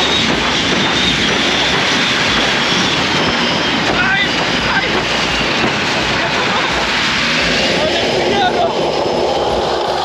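A young man laughs with excitement close by.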